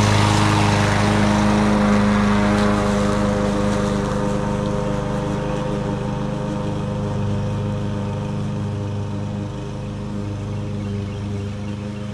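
A petrol lawn mower engine hums steadily, slowly fading as it moves away.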